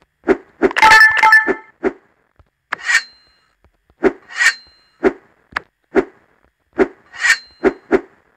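Short thumps of a cartoon character's footsteps and jumps sound again and again.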